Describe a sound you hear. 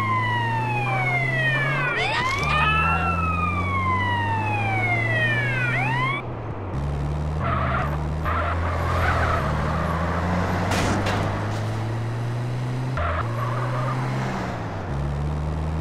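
A vehicle engine hums steadily, changing pitch as it drives.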